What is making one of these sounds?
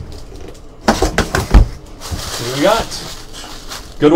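Paper packing crinkles and rustles.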